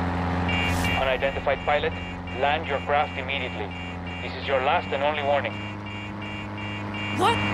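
A warning alarm beeps repeatedly.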